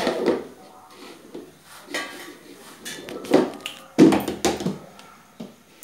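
A plastic lid clatters on a container.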